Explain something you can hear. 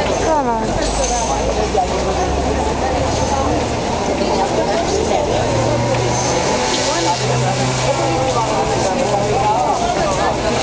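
A van's engine hums as it drives past on the street.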